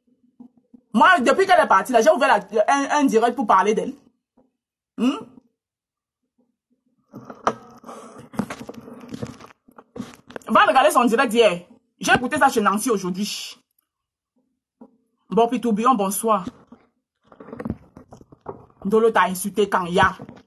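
A woman speaks close to a phone microphone, with animation, in bursts with pauses.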